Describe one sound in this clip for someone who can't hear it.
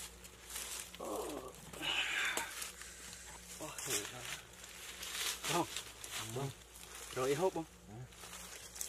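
Young men cry out and groan in pain.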